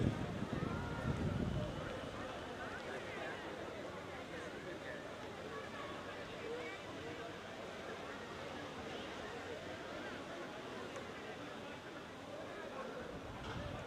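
Many voices murmur in the background outdoors.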